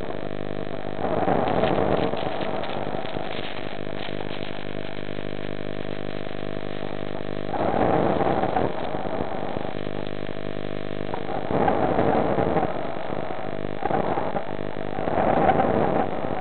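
Bubbles rush and gurgle underwater in short bursts.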